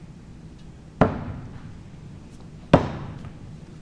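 Axes thud hard into wooden targets, echoing briefly.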